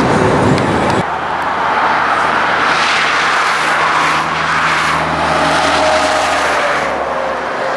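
Diesel-electric freight locomotives rumble as they approach.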